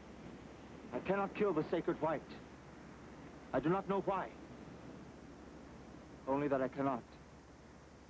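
A young man speaks tensely.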